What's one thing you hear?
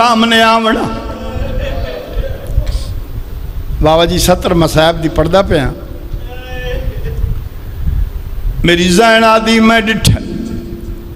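A man chants in a long, drawn-out voice through loudspeakers in a large echoing hall.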